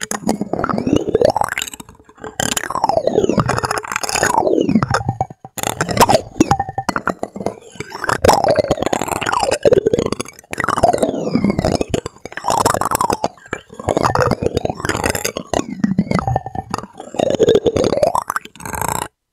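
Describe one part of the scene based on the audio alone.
A metal spoon taps and scrapes against a hard plastic shell.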